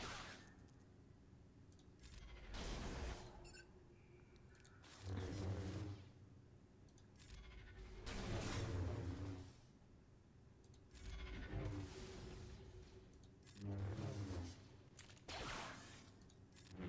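Lightsabers hum and clash in a video game.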